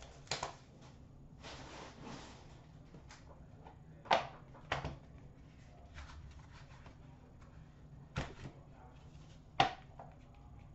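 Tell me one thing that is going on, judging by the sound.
Plastic cases click and tap as hands handle them.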